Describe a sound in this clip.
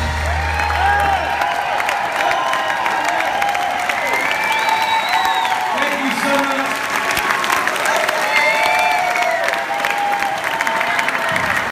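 A live band plays guitars and drums loudly.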